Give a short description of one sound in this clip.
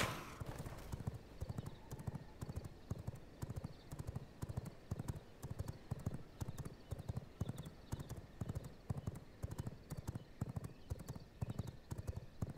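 Footsteps patter quickly and steadily on a path.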